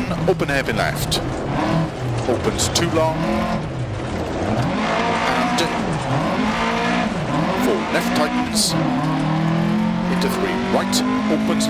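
A car engine revs up and down loudly as it races.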